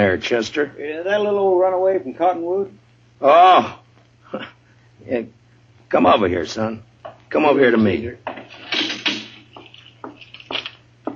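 An old radio plays a voice through its speaker.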